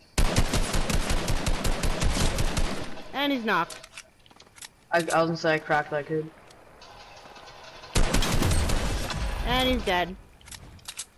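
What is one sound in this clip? Rapid rifle shots fire in quick bursts.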